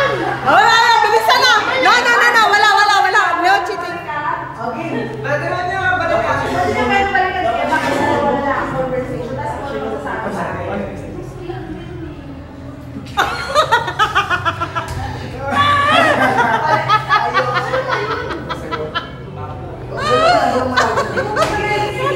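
A young man talks loudly and teasingly up close.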